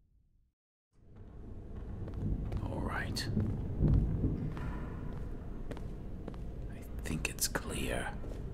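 Footsteps scuff across a stone floor.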